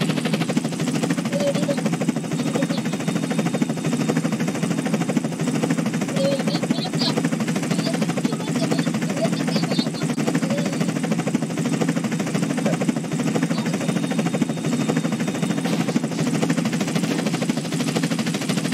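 A helicopter's rotor thumps steadily close by.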